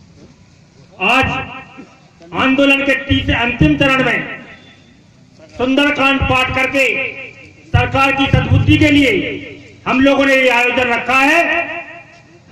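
A man sings a devotional song through a loudspeaker, in phrases with short pauses.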